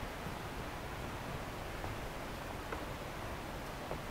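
Footsteps climb wooden stairs nearby.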